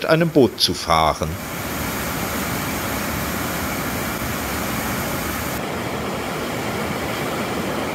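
Water rushes and churns steadily through a weir.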